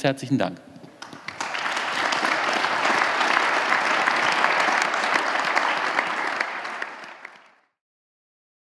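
An audience applauds and the applause fades out.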